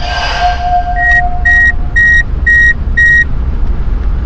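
A game chimes with short repeated beeps.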